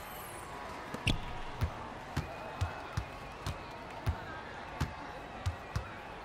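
A basketball bounces on a hard court in quick, steady dribbles.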